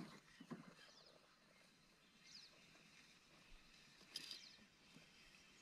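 Water laps gently against a small boat.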